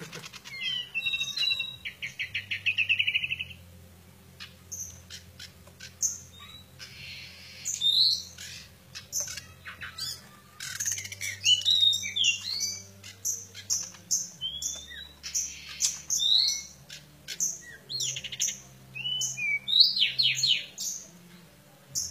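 A small bird sings loud, varied chirps and whistles close by.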